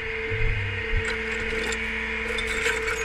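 Metal chains clink and rattle as they are handled.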